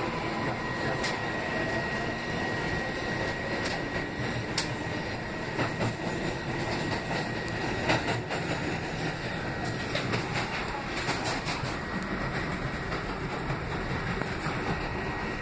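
Train wheels clack sharply over rail joints.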